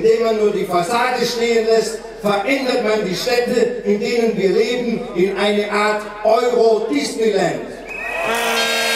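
A man speaks with animation into a microphone, heard over loudspeakers outdoors.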